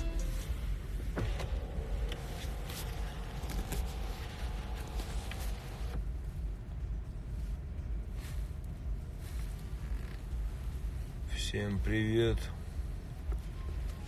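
A man talks casually into a phone, heard up close.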